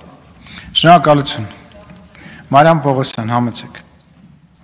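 A man speaks briefly and calmly into a microphone.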